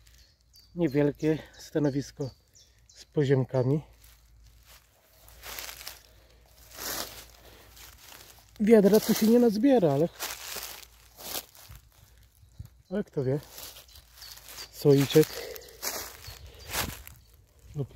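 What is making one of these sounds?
Footsteps rustle through dry leaves on the ground.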